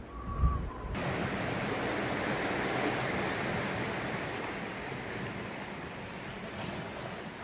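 Waves wash gently onto a shore outdoors.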